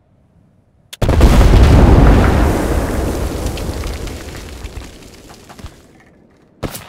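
A huge explosion booms and rumbles, then slowly dies away.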